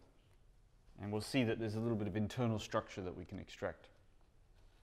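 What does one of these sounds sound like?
A man speaks in a lecturing tone.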